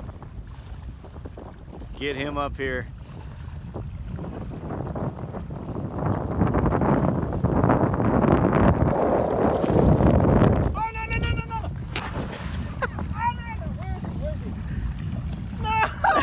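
Water laps and splashes near the shore.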